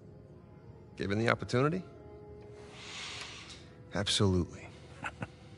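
A younger man answers briefly and calmly.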